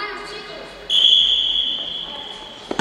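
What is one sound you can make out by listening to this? A referee's whistle blows a short shrill blast.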